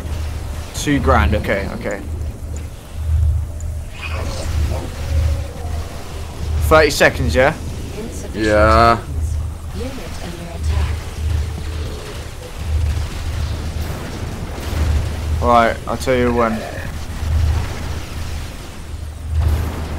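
Energy weapons zap and blast in a battle.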